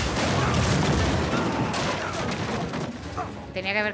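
A loud explosion booms and debris crashes down.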